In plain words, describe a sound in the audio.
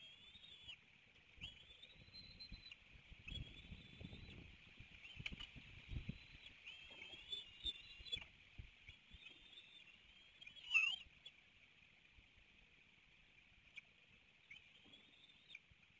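Young eagles give high, thin chirping calls again and again.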